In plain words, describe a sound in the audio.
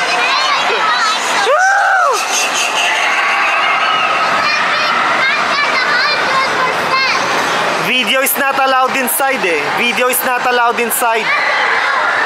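Young girls talk and laugh excitedly nearby.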